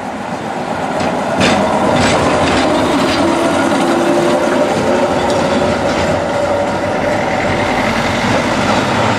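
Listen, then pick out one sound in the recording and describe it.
Tram wheels squeal on the rails.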